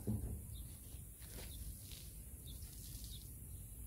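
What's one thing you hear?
Water trickles and splashes onto a car panel.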